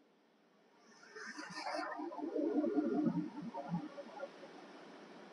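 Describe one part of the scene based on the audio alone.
A heavy metal door scrapes as it swings open.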